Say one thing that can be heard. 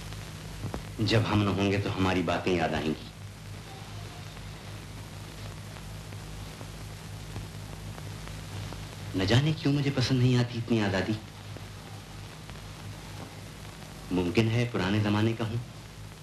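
A middle-aged man speaks sternly in short bursts, close by.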